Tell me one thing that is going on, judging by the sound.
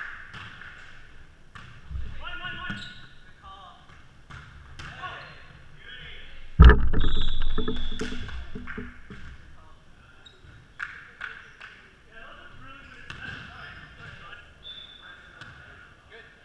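Men call out and talk across a large echoing gym.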